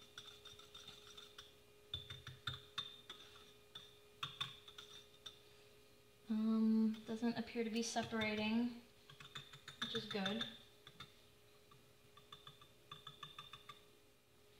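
A wire whisk taps and scrapes rapidly against a pot.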